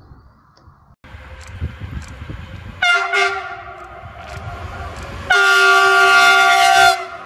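A train rushes past close by.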